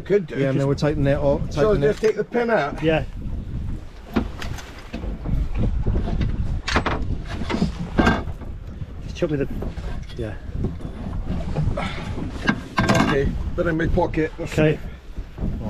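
An older man talks close by.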